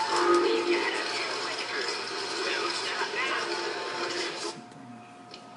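Video game music and effects play loudly from a television.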